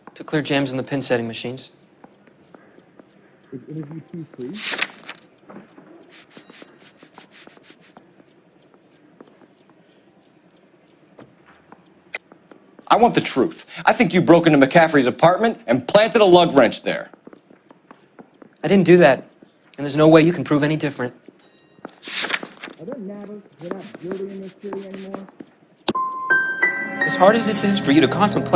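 A young man speaks defensively.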